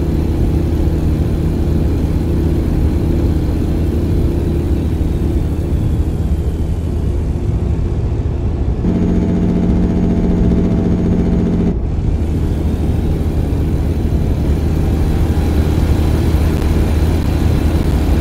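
A truck's tyres roll on the road.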